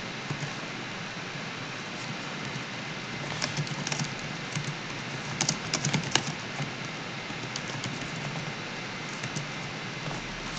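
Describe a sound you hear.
Keys on a keyboard click as someone types.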